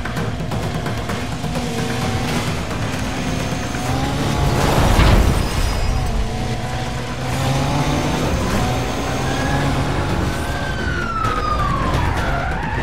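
A car engine roars at high revs, shifting pitch as it accelerates.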